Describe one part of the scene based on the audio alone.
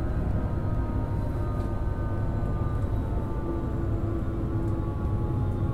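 An electric train hums steadily and rumbles over the rails.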